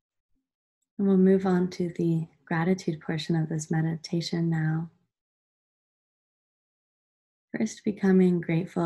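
A young woman speaks calmly and softly close to the microphone.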